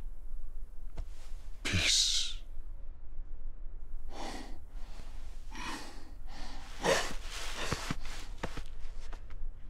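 A deep male voice speaks slowly and gruffly.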